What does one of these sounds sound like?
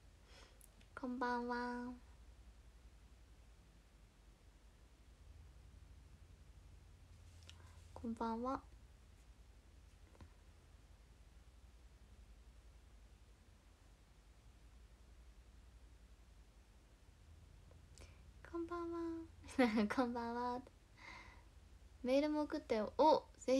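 A young woman speaks close to a microphone in short bursts.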